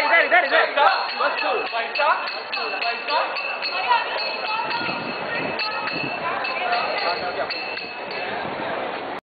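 Several young men talk and call out loudly close by, outdoors.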